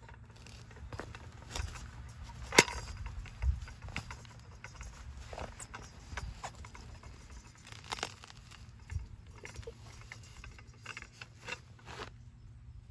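A metal weeding tool crunches into soil and roots.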